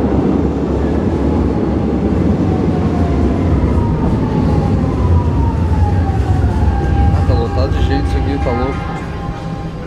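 Train brakes squeal with a falling whine as the train slows.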